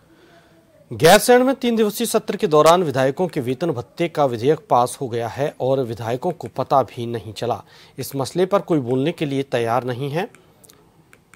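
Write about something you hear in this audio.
A man speaks clearly and steadily like a news presenter, close to a microphone.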